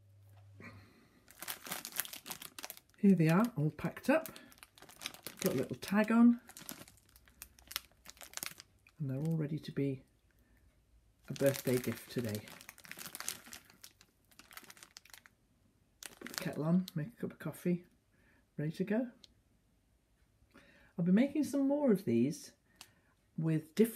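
A plastic bag crinkles and rustles in a hand.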